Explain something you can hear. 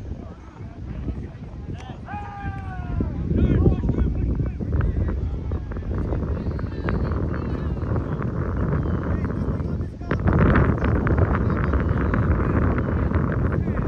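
Wind gusts loudly across the microphone outdoors.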